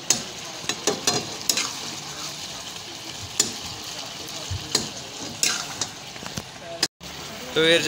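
A metal ladle scrapes and clanks against a steel wok.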